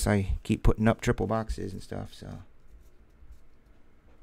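Cardboard packs rustle and tap in someone's hands.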